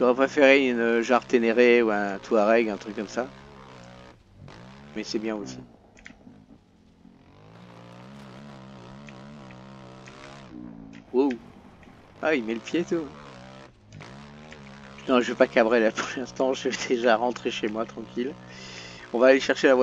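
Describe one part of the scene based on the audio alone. A motorbike engine hums steadily as the bike rides along.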